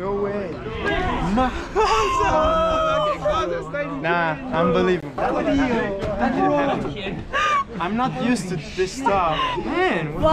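Young men cheer and talk loudly close by.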